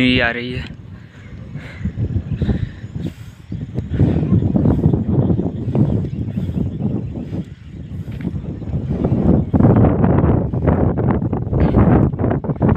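Wind gusts and buffets loudly against the microphone outdoors.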